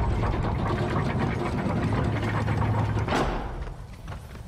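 A heavy stone mechanism rumbles loudly, then stops.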